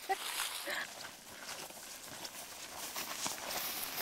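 Hikers' footsteps brush through dry grass and leaves.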